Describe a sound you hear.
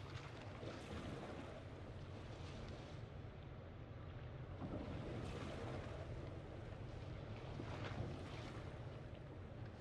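A motor boat cruises over open sea.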